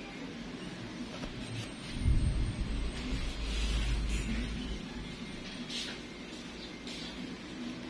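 A metal nail tool scrapes softly against a toenail.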